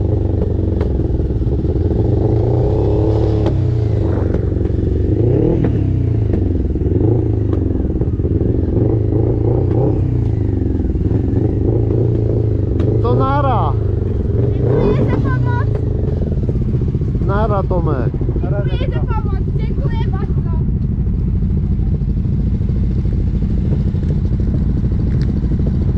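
An engine idles steadily close by.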